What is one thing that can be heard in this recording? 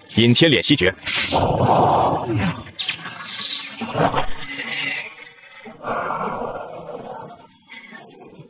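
A magical energy blast whooshes and roars.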